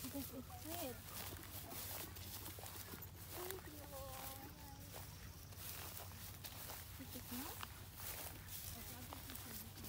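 Footsteps crunch softly on dry dirt.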